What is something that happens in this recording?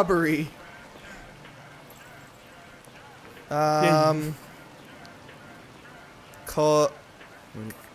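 A man speaks in short, calm phrases with pauses between them.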